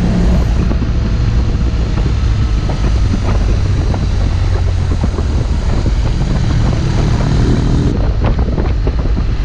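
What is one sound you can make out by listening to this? Wind roars loudly against the rider.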